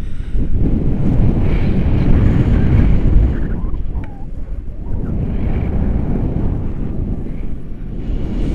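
Wind roars and buffets against a microphone outdoors.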